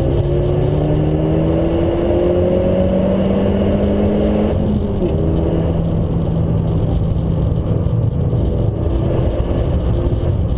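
Tyres roar on the track surface.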